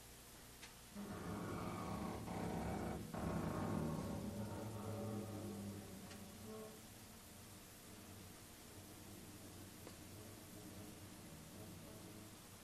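A saxophone plays a loud melody.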